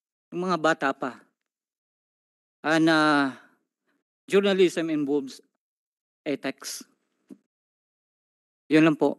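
A man speaks slowly into a microphone, with long pauses.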